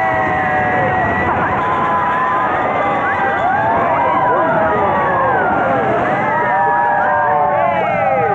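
A young woman screams loudly close by.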